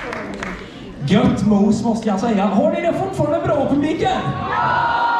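A man sings into a microphone over loudspeakers.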